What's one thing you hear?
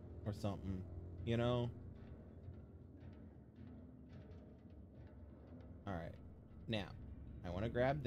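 Footsteps tread on a metal walkway.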